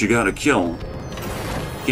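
A short triumphant fanfare plays.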